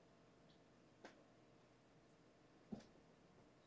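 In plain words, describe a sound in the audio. A kitten paws at a toy on a rug, with a soft tap.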